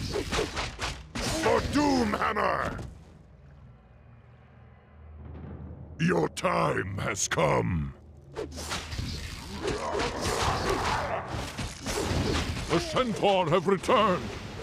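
Weapons clash and clang in a skirmish.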